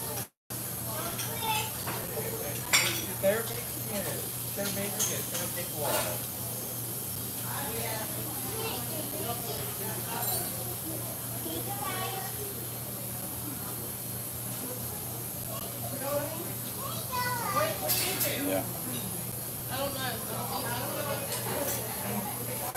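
A fork clinks and scrapes against a plate.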